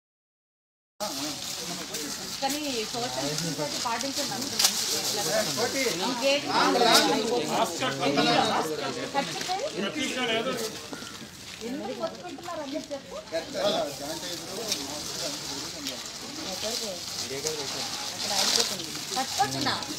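Several men and women talk over one another nearby.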